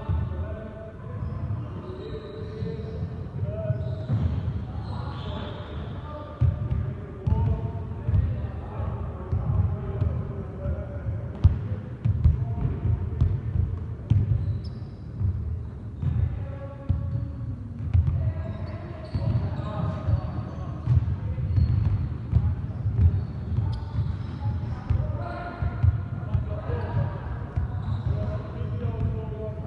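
A basketball thuds against a rebound net and bounces back.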